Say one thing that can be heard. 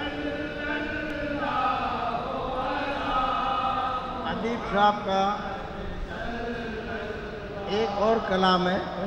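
An elderly man chants melodiously into a microphone, heard through a loudspeaker.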